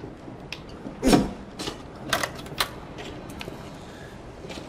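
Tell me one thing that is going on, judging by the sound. A door handle clicks and a wooden door swings open.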